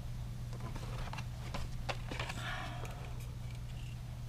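A tape reel clicks and knocks as it is handled.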